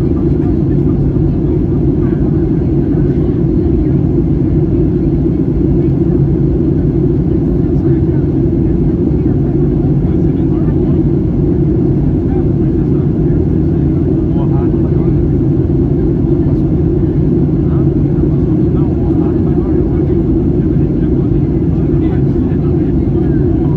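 Jet engines roar steadily, heard from inside an airliner cabin.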